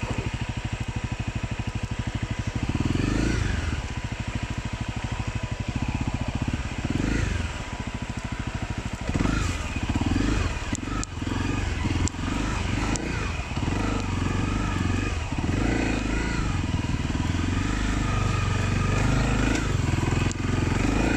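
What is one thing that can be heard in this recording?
Tyres crunch over dirt and brush against plants.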